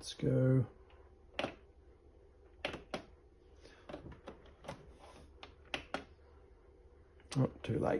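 Buttons on a sewing machine click softly.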